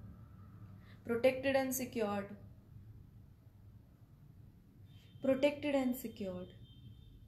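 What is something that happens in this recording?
A woman speaks calmly and close by, in short phrases.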